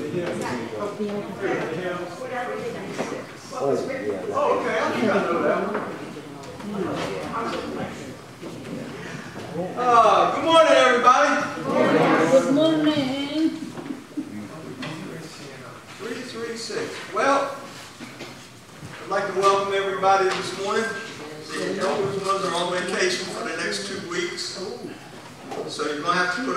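A middle-aged man speaks steadily through a microphone in a large echoing hall.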